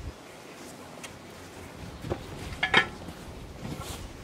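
Metal clanks as it is set down on a workbench.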